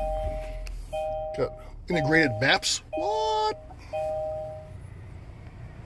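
A car's warning chime beeps several times in short, steady tones.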